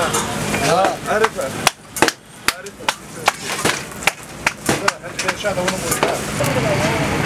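A rolling pin knocks and thumps on a metal counter.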